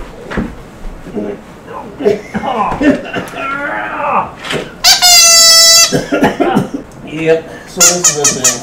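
A young man talks and laughs playfully, close by.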